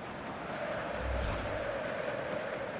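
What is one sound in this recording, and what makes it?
A ball thumps into a goal net.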